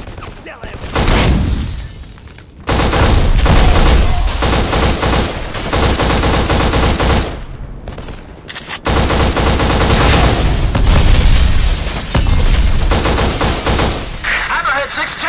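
An assault rifle fires rapid bursts of gunshots.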